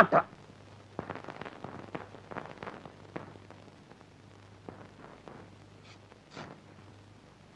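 A man tears open a paper envelope.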